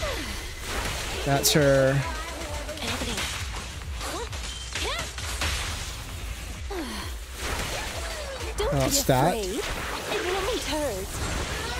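Electric energy crackles and zaps.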